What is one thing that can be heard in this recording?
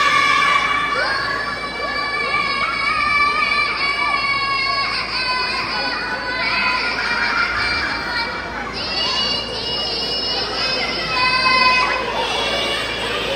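Young girls sing together in an echoing hall.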